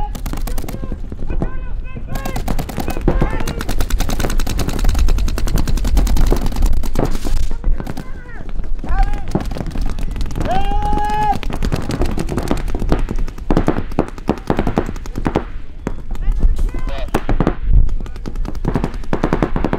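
Paintball markers fire in rapid, popping bursts outdoors.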